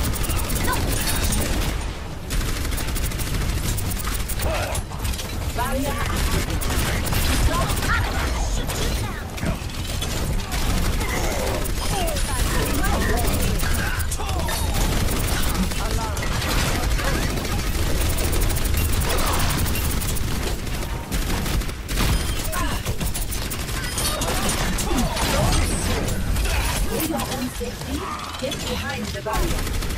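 A rapid-fire gun in a video game fires in bursts.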